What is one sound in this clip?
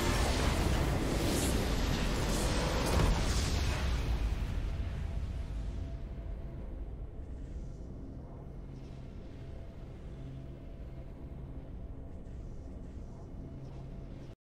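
Triumphant game music swells and then slowly fades.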